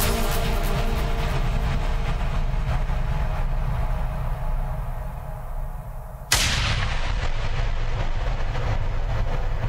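Electronic dance music plays with a heavy, thumping bass.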